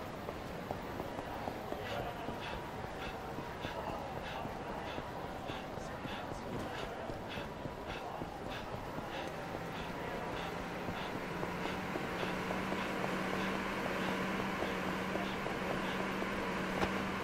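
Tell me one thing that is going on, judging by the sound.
Quick footsteps run steadily on pavement.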